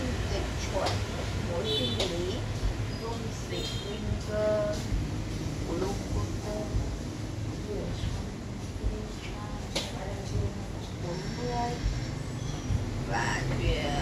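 Paper rustles in a young woman's hands.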